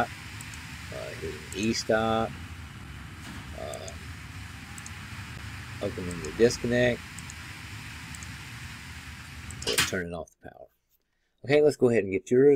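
An elderly man talks calmly into a microphone, in short bursts with pauses.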